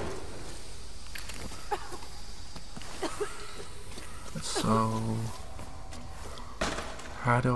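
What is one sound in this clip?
Footsteps crunch on loose rubble.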